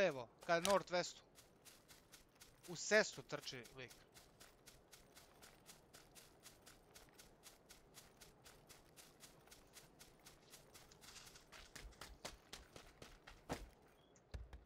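Footsteps patter quickly and steadily on the ground.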